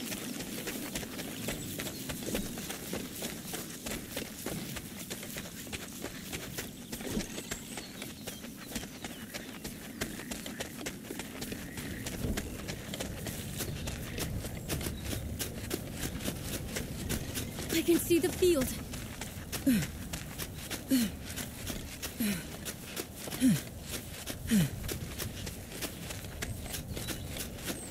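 Quick footsteps patter on dirt and grass.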